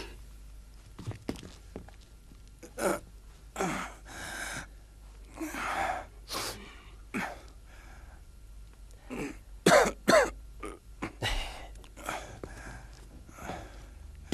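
A man speaks tensely close by.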